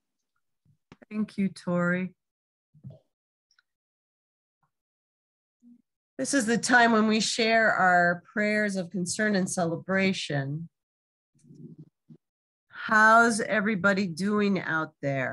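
A woman speaks clearly over an online call.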